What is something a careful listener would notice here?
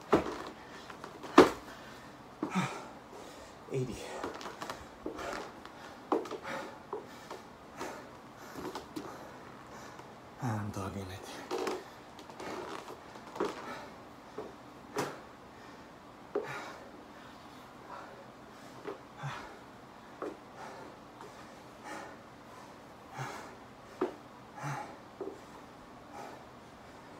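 Footsteps thud on a rubber floor mat.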